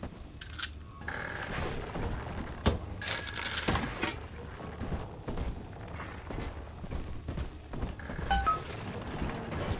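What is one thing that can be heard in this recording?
Short chimes ring as items are picked up.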